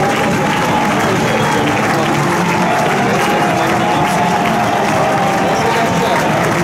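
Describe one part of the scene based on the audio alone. A crowd cheers and chatters outdoors.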